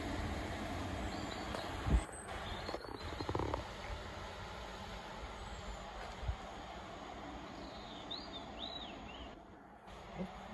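A train hums as it approaches from a distance.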